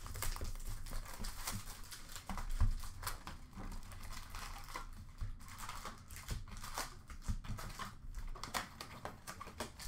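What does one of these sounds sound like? Cardboard packs rustle and crinkle as hands handle them.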